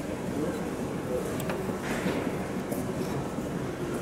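A metal window latch rattles under a finger.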